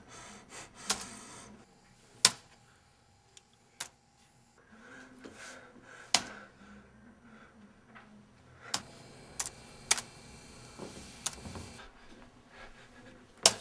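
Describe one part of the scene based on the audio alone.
Fingers tap on a laptop keyboard.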